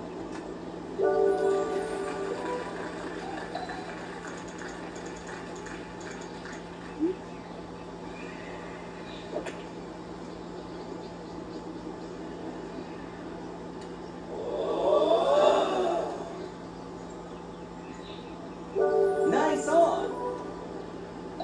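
A short cheerful game tune plays from a television loudspeaker.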